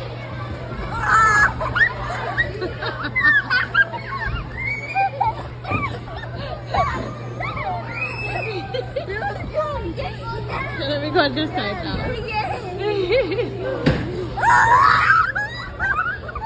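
Young boys squeal with excitement.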